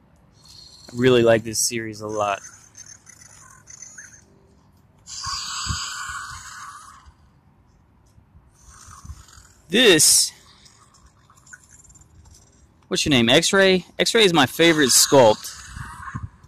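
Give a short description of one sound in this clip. An electronic toy dinosaur roars and growls through a small speaker.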